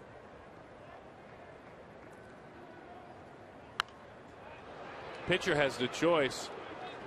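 A crowd murmurs in a large open stadium.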